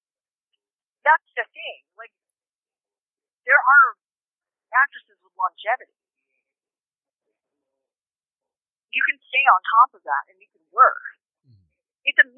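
A young woman speaks calmly into a microphone, in short bursts with pauses.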